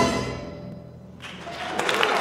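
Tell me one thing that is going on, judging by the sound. An orchestra plays in a large hall.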